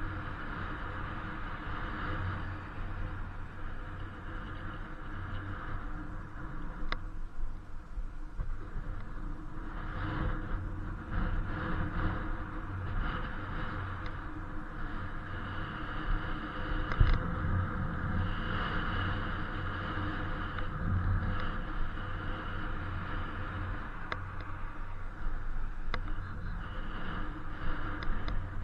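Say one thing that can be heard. Bicycle tyres hum steadily on the road.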